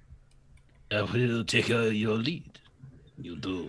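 A man exclaims excitedly over an online call.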